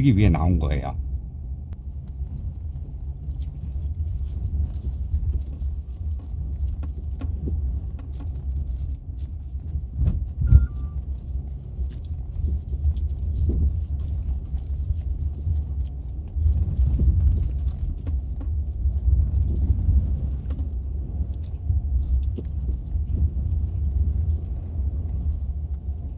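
A car engine hums low and steady with road rumble from inside the cabin.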